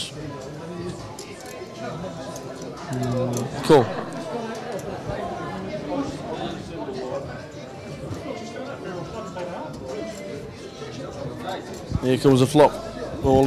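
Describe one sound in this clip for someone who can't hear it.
Several men chat and laugh nearby.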